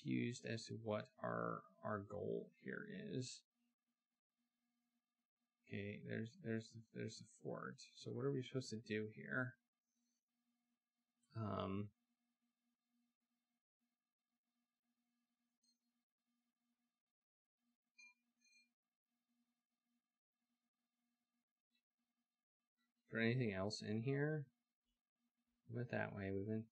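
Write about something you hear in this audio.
A man talks into a headset microphone, in bursts with pauses.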